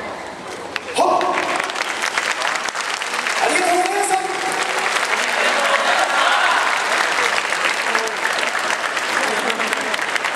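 A group of young dancers shouts together in a large echoing hall.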